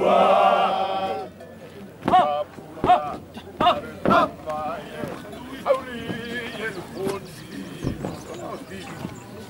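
A group of men sing together in chorus outdoors.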